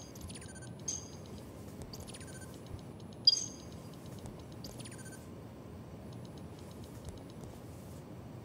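Short electronic interface chimes and clicks ring out again and again.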